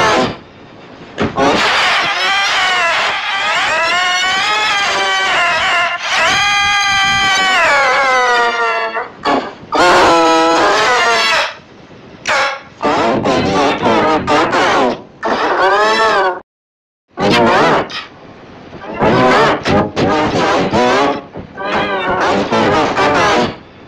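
A young child cries and screams loudly and shrilly.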